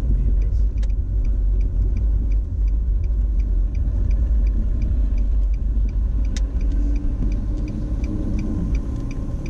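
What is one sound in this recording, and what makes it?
A turn signal ticks at an even pace.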